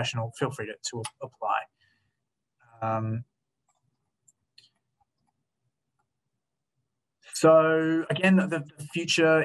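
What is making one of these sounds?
A young man speaks calmly over an online call, with pauses.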